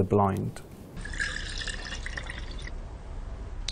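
Juice pours and splashes into a glass.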